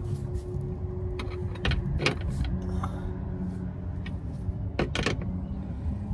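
A wrench clicks against a metal bolt.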